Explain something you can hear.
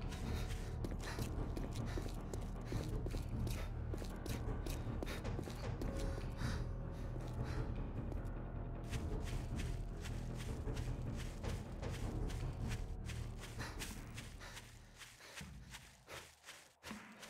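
Footsteps tap quickly on pavement and then swish through grass.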